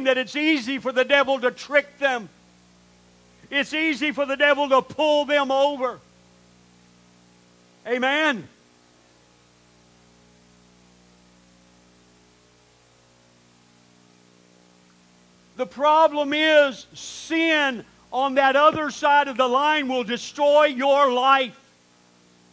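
A man preaches with animation through a microphone, with long pauses.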